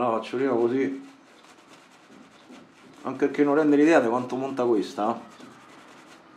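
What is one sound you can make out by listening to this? A shaving brush swishes and lathers foam on a beard.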